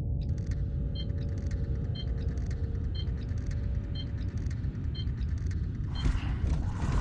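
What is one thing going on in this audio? Electronic beeps repeat evenly at a steady pace.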